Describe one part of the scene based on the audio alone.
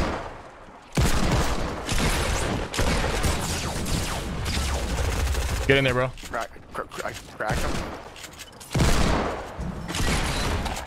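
A young man talks with animation close to a headset microphone.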